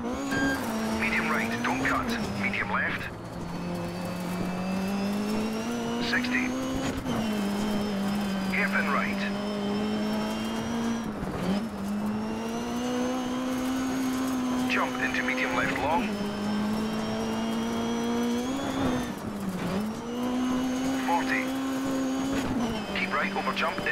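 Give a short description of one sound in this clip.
Tyres skid and crunch on loose gravel in short bursts.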